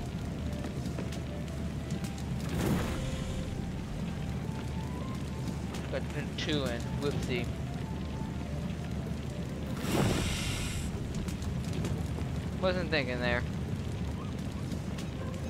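A fire roars steadily in a furnace.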